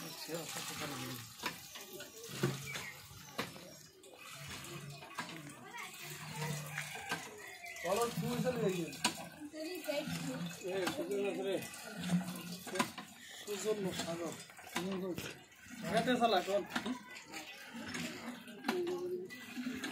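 A hand pump's lever clanks as it is worked.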